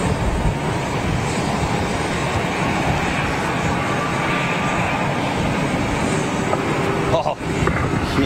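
A jet airliner's engines roar steadily as it taxis past nearby.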